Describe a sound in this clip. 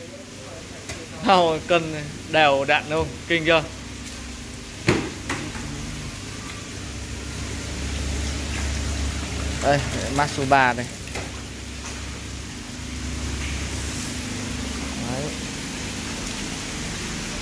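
Fish thrash and splash in shallow water.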